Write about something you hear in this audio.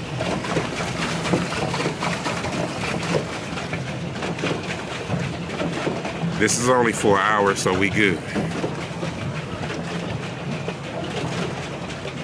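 Water laps and splashes against a small boat's hull.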